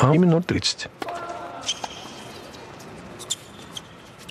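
A tennis ball is struck by a racket.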